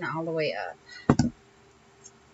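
A bottle is set down on a hard surface with a knock.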